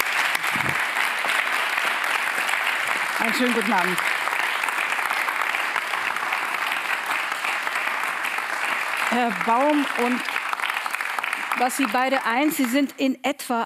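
An audience applauds steadily in a large room.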